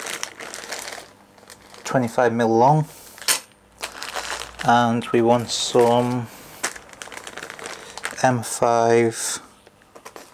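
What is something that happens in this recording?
A plastic bag crinkles and rustles in a hand.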